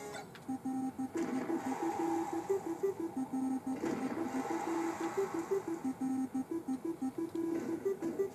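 A fast, bouncy video game tune plays.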